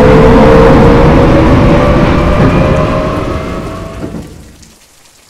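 A train's motor whines with a steady, slowly falling tone.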